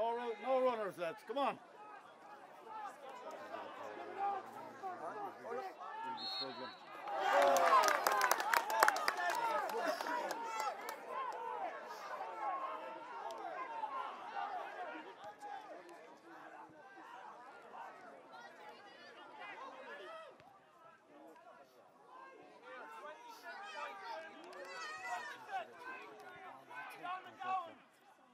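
Men nearby shout and cheer outdoors.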